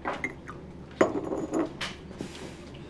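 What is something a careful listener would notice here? Porcelain clinks against porcelain.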